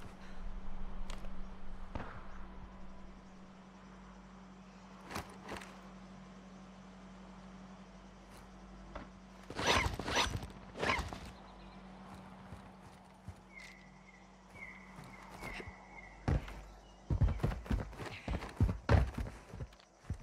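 Footsteps thud quickly on concrete.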